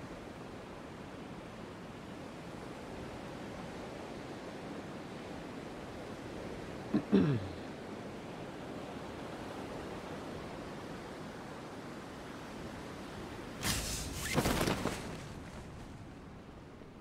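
Wind rushes steadily during a fall through the air.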